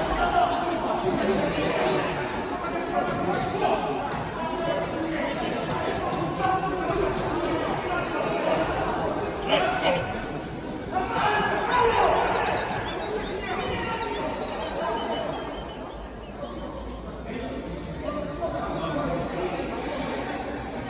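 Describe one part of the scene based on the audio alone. Men shout loudly from ringside in an echoing hall.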